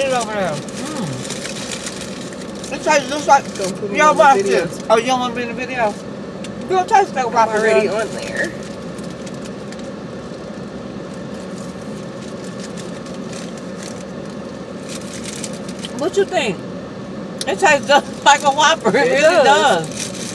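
A woman talks with animation close by inside a car.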